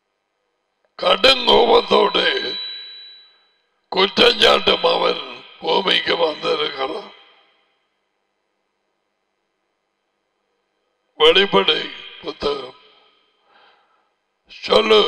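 An elderly man speaks calmly into a headset microphone, pausing between phrases.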